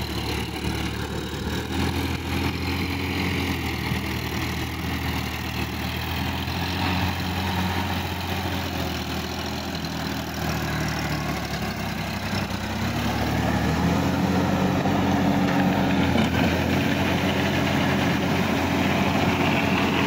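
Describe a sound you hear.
A tractor's tyres churn and splash through deep mud.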